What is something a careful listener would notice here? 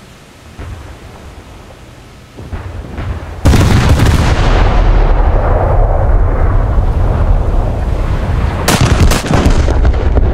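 Shell explosions thud in the distance.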